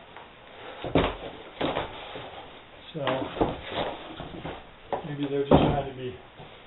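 Cardboard thumps as a box lid is set down.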